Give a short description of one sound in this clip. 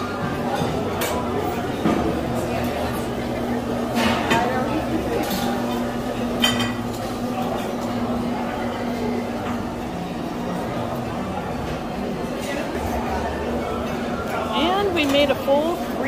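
Serving utensils clink against dishes.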